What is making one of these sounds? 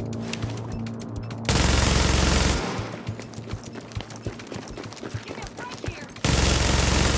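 Gunshots fire in quick bursts, with loud blasts.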